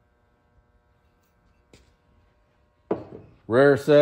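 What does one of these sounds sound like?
A glass vase knocks softly on a wooden table.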